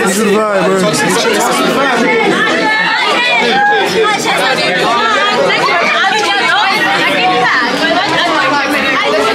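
A crowd of teenagers shouts and chatters loudly close by.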